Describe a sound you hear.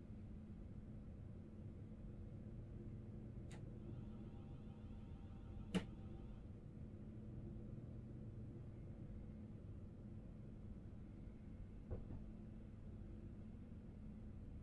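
Train wheels rumble along the track.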